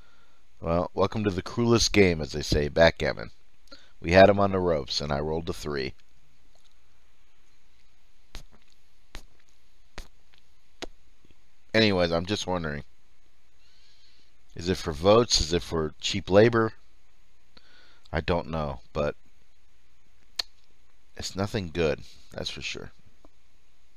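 A middle-aged man talks calmly into a close microphone, in short bursts.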